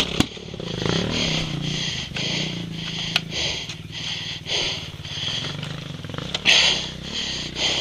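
A dirt bike engine runs while riding over a dirt track.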